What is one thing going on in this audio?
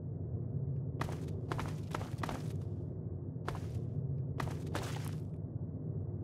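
Footsteps thud on a hard floor at an even pace.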